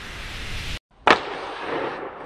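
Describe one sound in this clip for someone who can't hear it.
A hockey stick slaps a puck.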